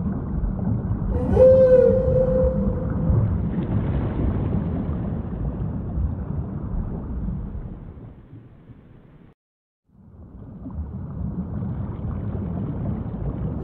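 Water splashes and churns as a whale dives.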